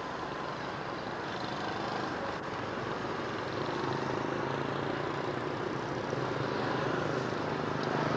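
Motorbikes putter by on the street.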